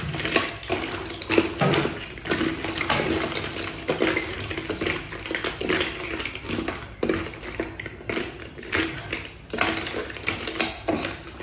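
A wooden spatula scrapes and stirs food in a metal pan.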